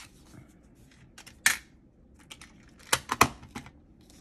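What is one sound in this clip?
A plastic paint palette clicks and clacks as it is set down.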